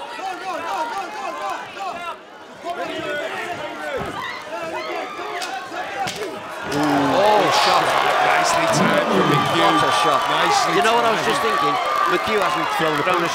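A crowd cheers and shouts loudly in a large hall.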